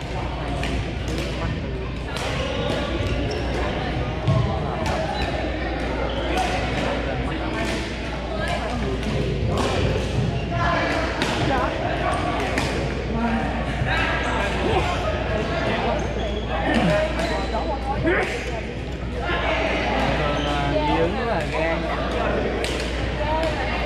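A crowd of people chatter throughout a large echoing hall.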